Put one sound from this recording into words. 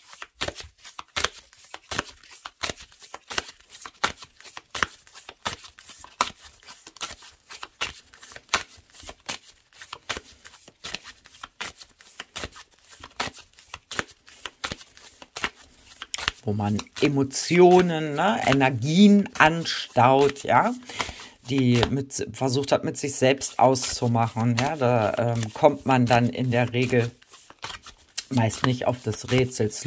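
Playing cards riffle and slap softly as they are shuffled by hand.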